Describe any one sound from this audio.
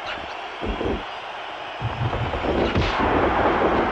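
Heavy thuds of bodies hitting a wrestling mat land several times.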